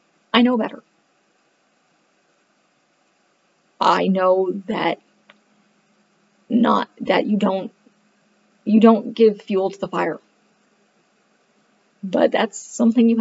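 A woman speaks calmly in short phrases, close to a microphone as if on an online call.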